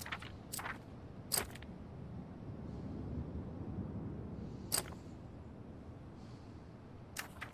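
Short sharp clicks sound now and then.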